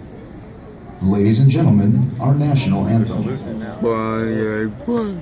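A man calls out loud drawn-out commands over a loudspeaker, echoing across an open field.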